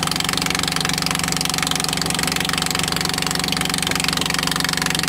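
A boat engine drones steadily and loudly.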